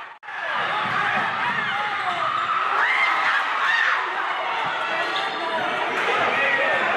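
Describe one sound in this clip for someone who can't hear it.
Sneakers squeak sharply on a hardwood floor in a large echoing gym.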